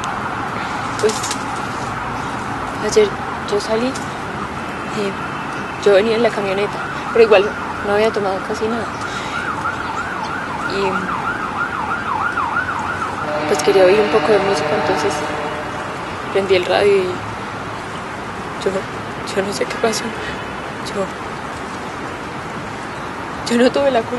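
A young woman speaks quietly and calmly close by.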